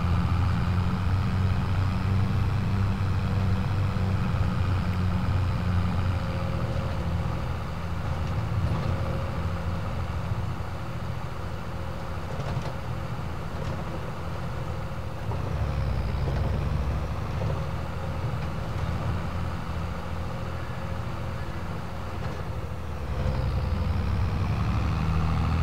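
A tractor engine rumbles steadily from inside the cab, rising and falling as it speeds up and slows.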